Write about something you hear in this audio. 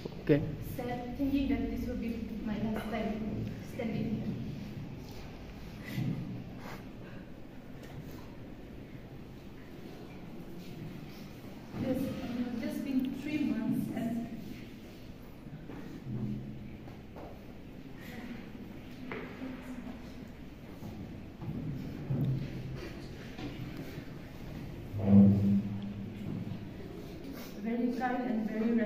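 A young woman speaks emotionally through a microphone in an echoing room.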